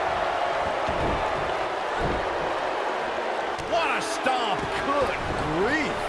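A large arena crowd cheers and murmurs.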